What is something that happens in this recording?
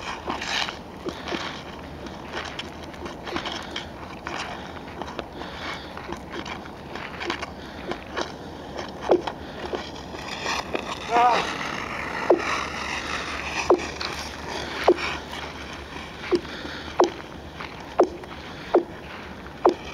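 Ice skates scrape and glide over ice.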